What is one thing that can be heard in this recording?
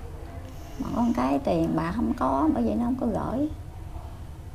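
A middle-aged woman speaks up close to a microphone.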